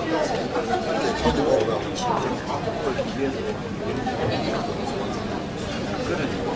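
A crowd of adults chatters in a large echoing hall.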